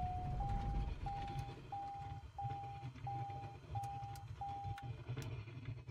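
An electronic warning tone beeps rapidly and steadily, then stops.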